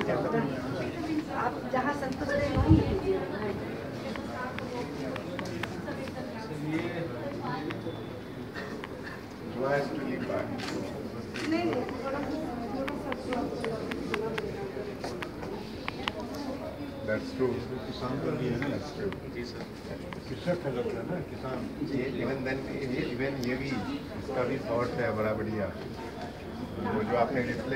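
A young man speaks calmly to a small group in a room with a light echo.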